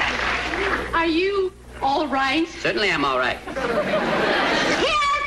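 A woman speaks playfully nearby.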